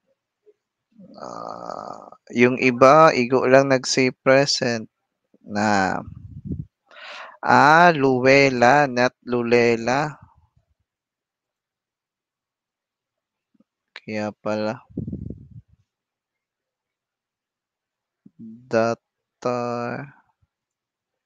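A young man talks calmly into a headset microphone, in short bursts with pauses.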